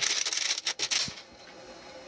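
A hand presses buttons on a desk phone.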